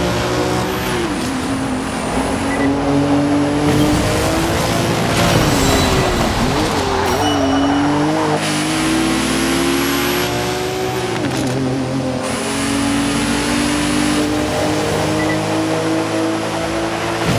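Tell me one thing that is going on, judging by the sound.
A car engine revs loudly and shifts gears as it races.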